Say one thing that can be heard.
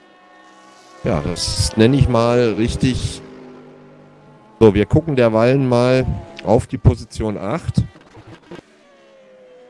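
A racing car engine roars loudly up close as it passes.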